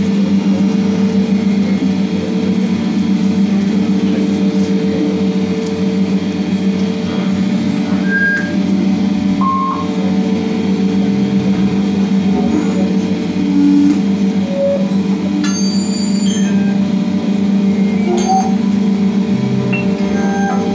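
A keyboard synthesizer plays bleeping electronic tones through loudspeakers.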